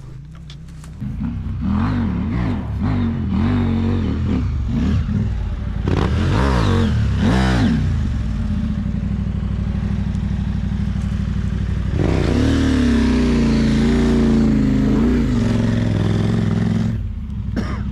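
A motorcycle engine revs hard and close, rising and falling in pitch.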